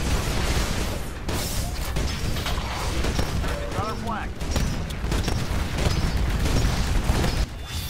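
A cannon fires in loud booming shots.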